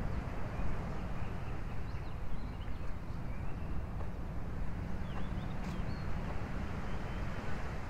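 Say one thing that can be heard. Wind blows steadily outdoors, rustling the leaves of trees.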